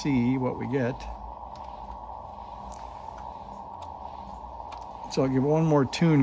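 A small plug clicks into a circuit board.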